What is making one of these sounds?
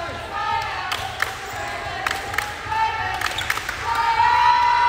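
A volleyball is struck with sharp slaps, echoing in a large hall.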